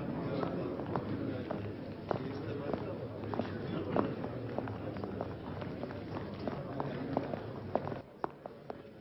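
A crowd of men murmurs and chatters in a large room.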